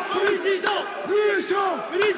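A man shouts excitedly, close to microphones.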